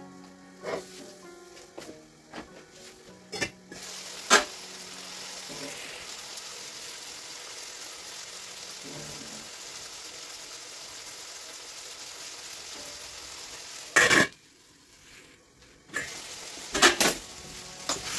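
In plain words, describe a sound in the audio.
Metal lids clink against pots.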